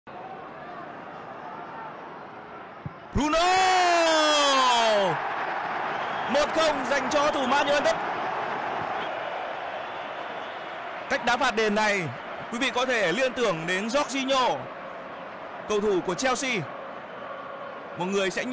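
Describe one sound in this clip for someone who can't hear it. A large crowd roars loudly in a stadium.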